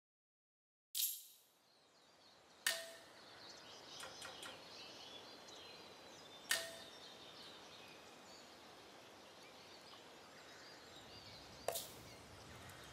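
Short electronic menu chimes sound a few times.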